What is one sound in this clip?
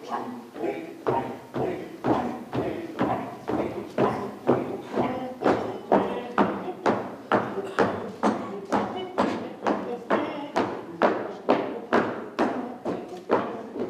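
Feet stamp in a steady rhythm on a wooden stage.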